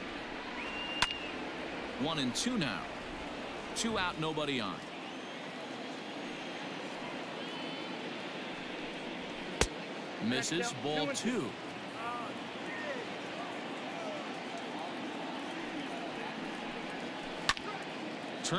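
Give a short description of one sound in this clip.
A baseball pops sharply into a catcher's mitt.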